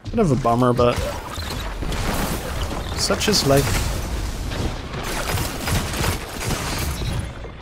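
Gunshots and laser blasts crack in quick bursts.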